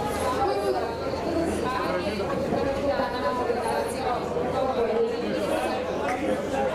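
A crowd of men and women chatters and calls out nearby, outdoors.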